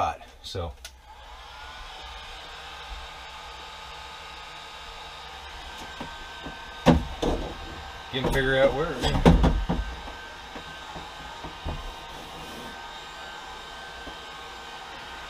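A heat gun blows with a steady whirring hum.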